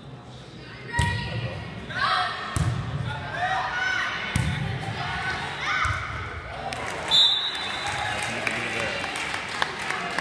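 Girls shout and call out to each other in a large echoing gym.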